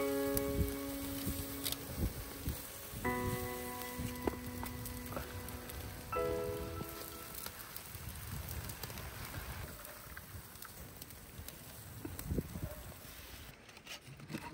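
Food sizzles in a hot pan over a fire.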